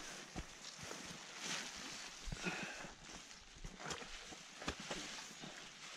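A plastic rain poncho rustles and crinkles close by.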